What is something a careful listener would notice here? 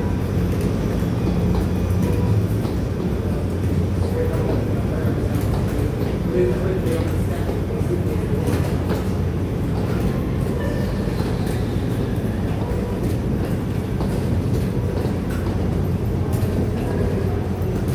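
Suitcase wheels rumble steadily over a hard floor.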